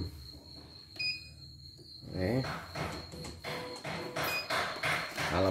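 A machine gives short electronic beeps as its buttons are pressed.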